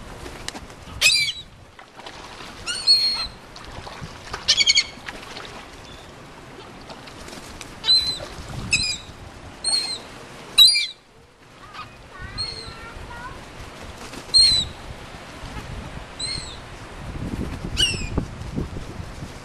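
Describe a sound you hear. A flock of seagulls calls with sharp, squealing cries close overhead.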